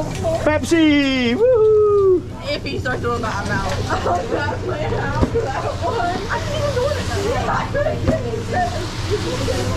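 Noodles sizzle on a hot griddle.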